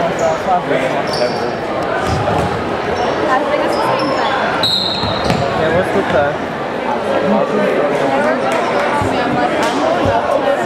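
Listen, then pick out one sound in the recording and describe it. A crowd of spectators cheers and chatters loudly in a large echoing gym.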